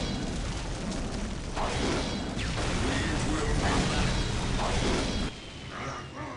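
Flames crackle and roar steadily.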